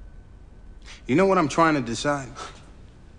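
A man speaks up loudly and urgently close by.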